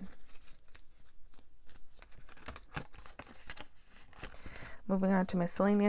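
Paper banknotes rustle and crinkle as they are counted by hand, close up.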